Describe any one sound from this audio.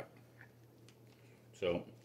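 A utensil scrapes and stirs food in a pot.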